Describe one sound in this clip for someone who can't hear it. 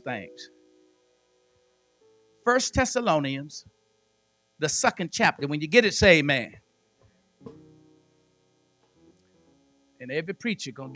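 An elderly man preaches with emphasis into a microphone, in short bursts with pauses.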